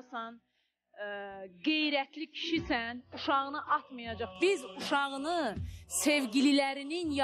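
A young man speaks in an emotional voice, close by.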